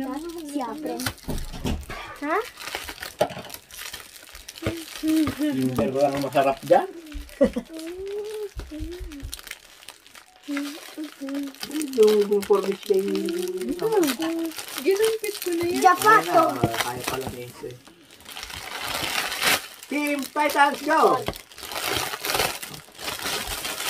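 Foil wrapping crinkles and rustles as it is torn open.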